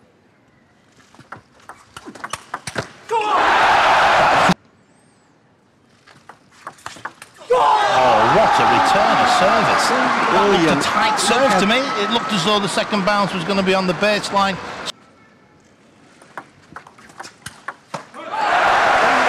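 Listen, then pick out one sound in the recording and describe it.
A ball clicks back and forth on paddles and a table.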